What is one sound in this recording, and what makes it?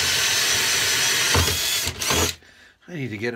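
A cordless drill whirs as it drills into wood.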